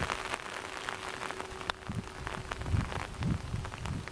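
A putter taps a golf ball with a light click.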